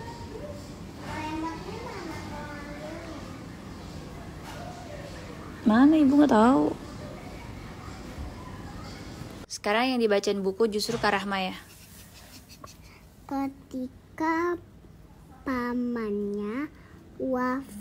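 A little girl speaks up close in a high voice.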